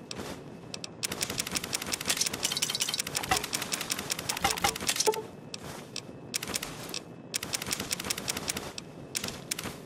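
Small metal items clatter and rattle in quick bursts.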